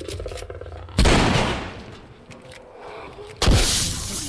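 Loud gunshots boom and ring out with an echo.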